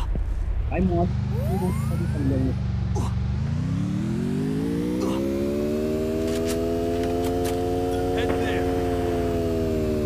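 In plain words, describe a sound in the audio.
A car engine hums and revs up, then holds a steady drone.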